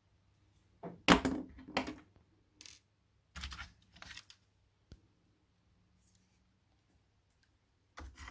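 Small plastic parts knock and rattle.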